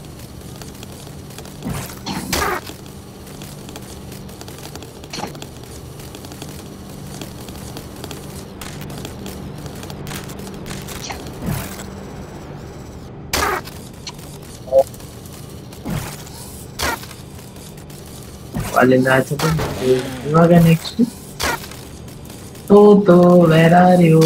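A small robot's metal legs tap and clatter as it scuttles along.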